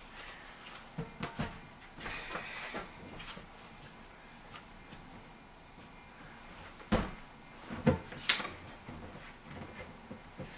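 An exercise ball thumps and squeaks under hands.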